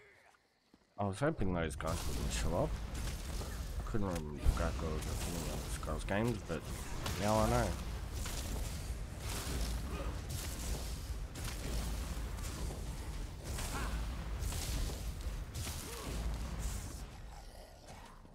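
Spells crackle and blast in a fight.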